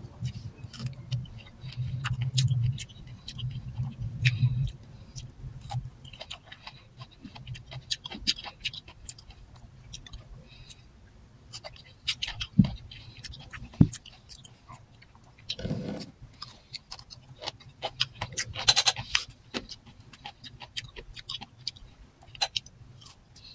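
A young woman chews and munches food close by.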